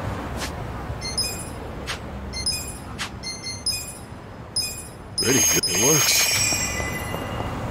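Short menu clicks and chimes sound in quick succession.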